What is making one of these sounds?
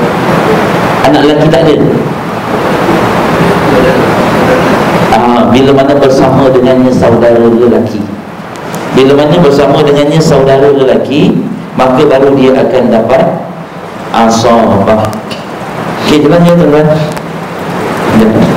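A young man speaks calmly and steadily into a close microphone.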